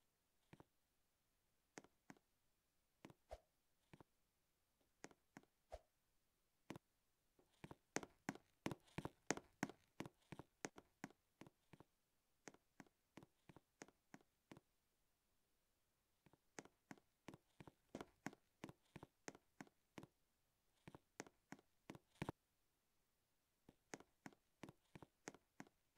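Light footsteps patter quickly in short bursts.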